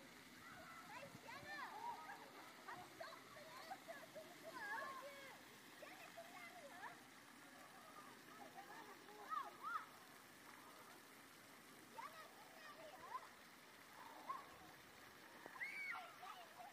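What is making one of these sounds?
Young children shout and squeal.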